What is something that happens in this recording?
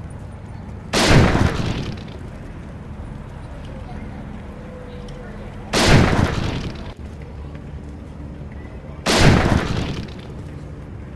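A sniper rifle fires single loud shots, each followed by a short echoing tail.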